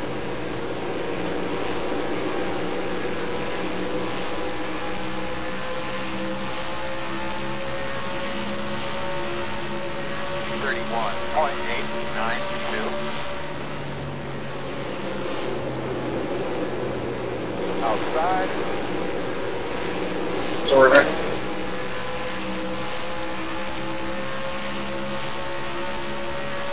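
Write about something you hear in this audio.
A simulated stock car engine drones at full throttle in a racing game.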